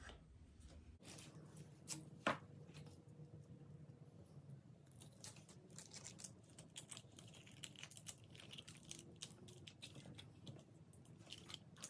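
Paper crinkles and rustles close by.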